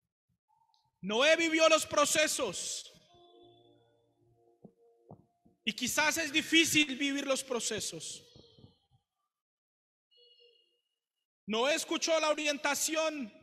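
A young man speaks loudly and with passion into a microphone in an echoing hall, in short bursts with pauses.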